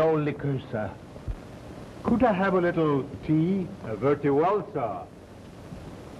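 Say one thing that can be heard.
A woman speaks with dramatic emotion, heard through an old, hissy recording.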